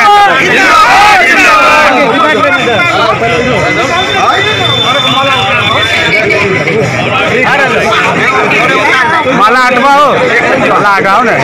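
A crowd of men shouts and cheers loudly up close.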